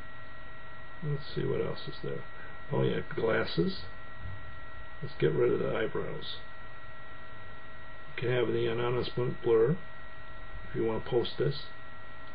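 A middle-aged man speaks calmly in short phrases, heard through a computer microphone.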